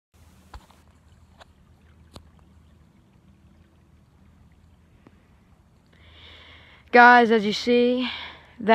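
A river flows gently.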